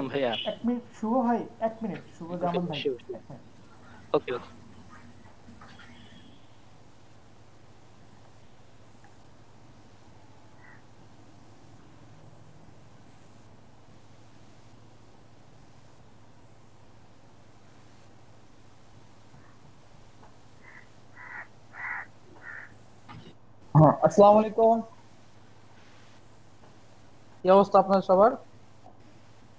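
Young men speak briefly in turns over an online call.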